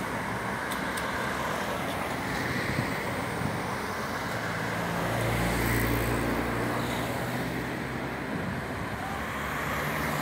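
Cars drive past close by on a road, tyres humming and engines rumbling.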